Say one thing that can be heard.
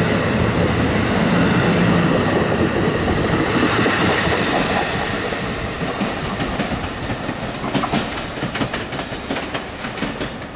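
An electric commuter train rolls away along the track and fades into the distance.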